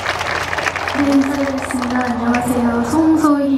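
A young woman sings softly into a microphone.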